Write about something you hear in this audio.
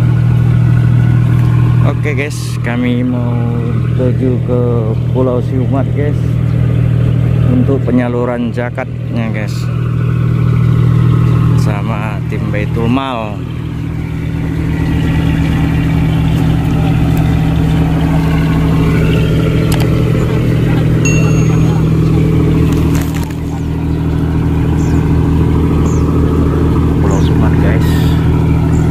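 A large ship's engine idles nearby with a steady low hum.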